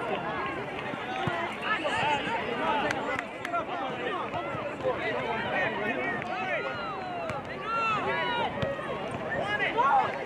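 A soccer ball thuds as it is kicked and headed.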